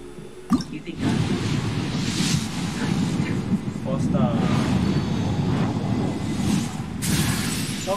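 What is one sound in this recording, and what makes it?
A magical shimmering whoosh swells as a shooting star streaks across the sky.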